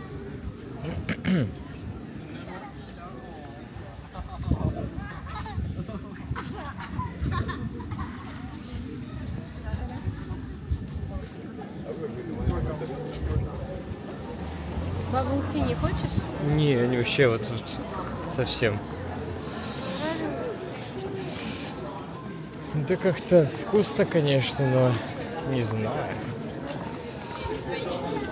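Men and women talk nearby in a street crowd.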